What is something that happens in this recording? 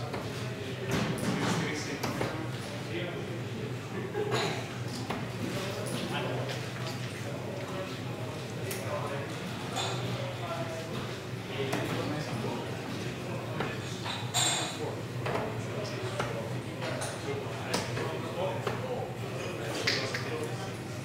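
Darts thud into a dartboard one after another.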